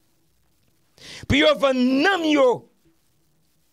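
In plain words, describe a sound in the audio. A man speaks with animation, close into a microphone.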